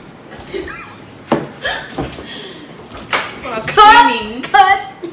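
Young women laugh and shriek with excitement nearby.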